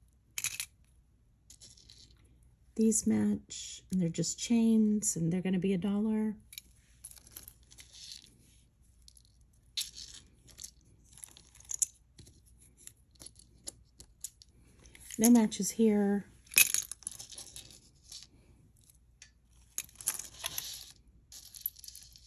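Metal jewellery clinks and rattles as it is handled.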